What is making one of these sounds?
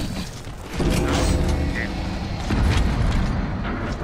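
Deep explosions rumble and boom.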